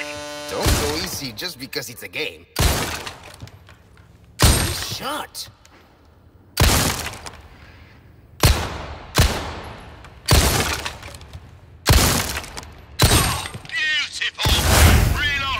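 A pistol fires loud, echoing shots at a steady pace.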